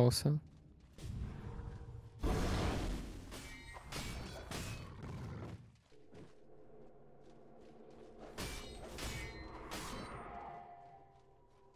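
Game weapons clash and thud during a fight.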